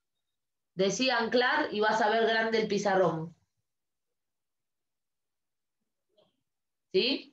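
A woman speaks clearly and calmly close by, explaining.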